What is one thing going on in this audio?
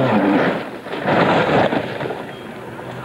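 A car crashes with a loud scraping thud.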